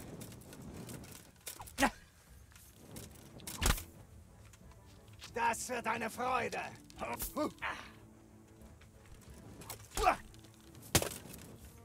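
A man shouts aggressively nearby.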